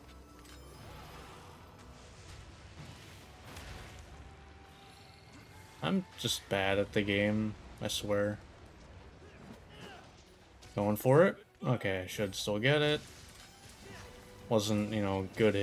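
Sword slashes and impacts clash in a video game fight.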